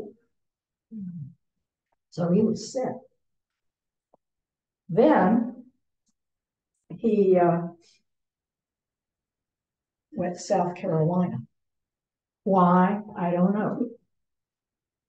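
An elderly woman speaks calmly in short phrases, heard through an online call.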